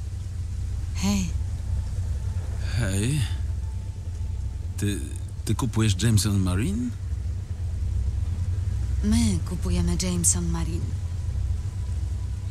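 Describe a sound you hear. A young woman talks.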